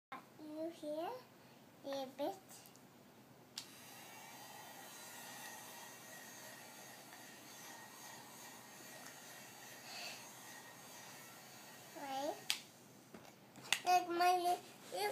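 A young girl talks close by in a high, lively voice.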